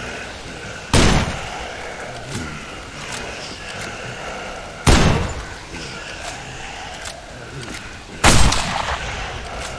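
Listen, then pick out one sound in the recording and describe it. A rifle fires single loud shots that echo briefly.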